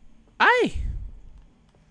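A young man exclaims loudly.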